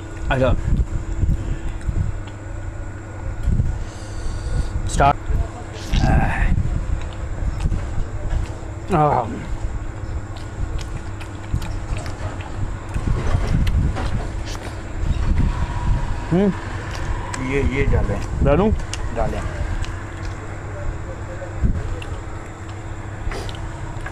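Hands squish and mix rice on a plate.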